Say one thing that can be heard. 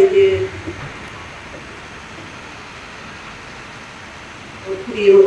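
A woman speaks calmly into a microphone, heard through loudspeakers outdoors.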